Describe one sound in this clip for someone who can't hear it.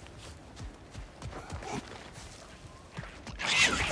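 Heavy footsteps crunch on gravel.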